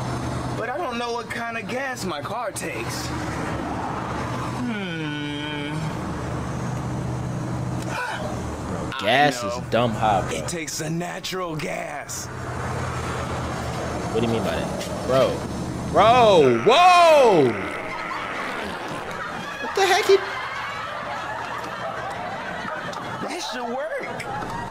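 A young man laughs and talks close to a microphone.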